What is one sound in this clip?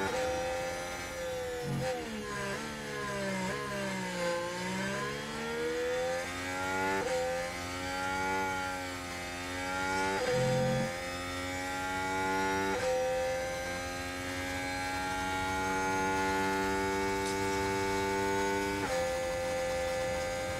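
A racing car engine roars loudly, rising in pitch and dropping with each gear change.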